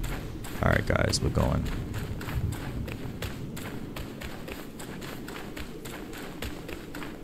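Footsteps tread steadily over stony ground.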